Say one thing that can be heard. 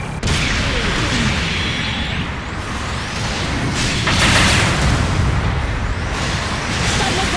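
Loud laser blasts and explosions burst and roar.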